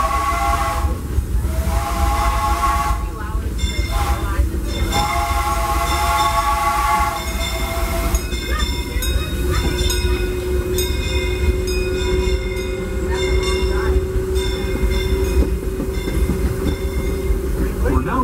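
A small train rumbles and clatters along its rails, heard from on board.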